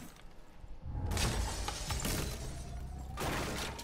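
A loud explosion blasts through a wooden wall.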